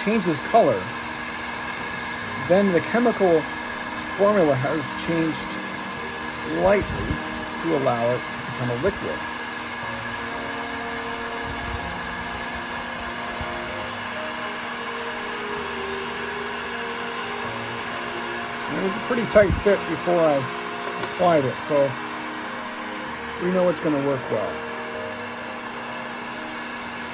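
A heat gun blows with a steady whir.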